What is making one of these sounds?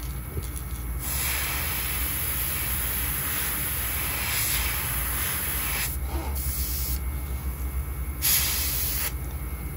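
An airbrush hisses as it sprays paint.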